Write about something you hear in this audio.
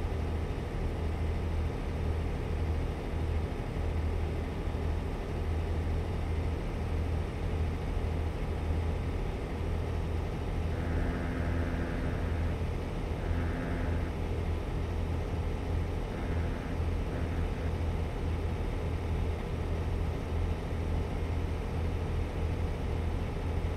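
A truck engine drones steadily with a low rumble.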